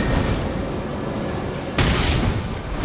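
A magic spell bursts with a shimmering whoosh.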